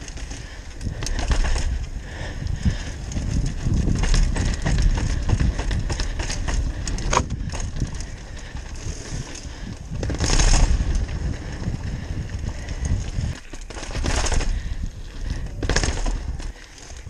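Wind rushes loudly past a fast-moving bike rider.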